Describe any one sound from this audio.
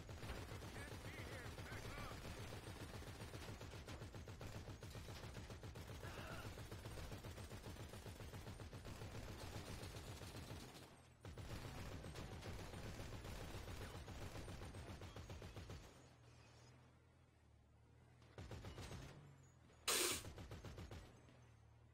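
A machine gun fires in long, rapid bursts.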